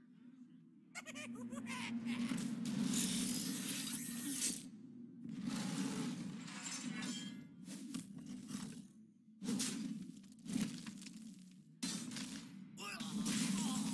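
Magical game sound effects whoosh and chime in bursts.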